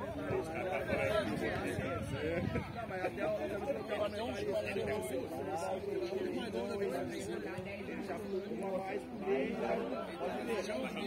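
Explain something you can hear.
Men talk and call out nearby, outdoors.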